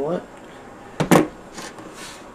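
A hard plastic case knocks and clatters as it is handled.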